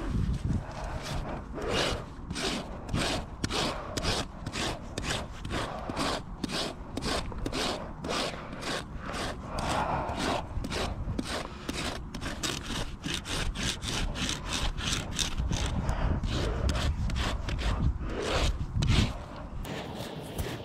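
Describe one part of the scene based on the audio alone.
A rasp files a horse's hoof with quick, rhythmic scraping strokes.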